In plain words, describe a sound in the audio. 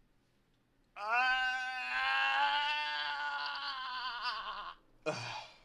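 A young man wails in a long, drawn-out cry close to a microphone.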